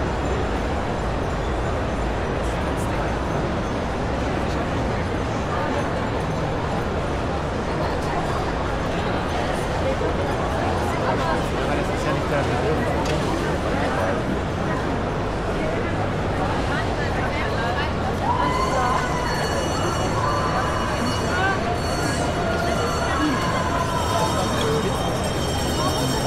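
A large crowd chatters steadily in a big echoing hall.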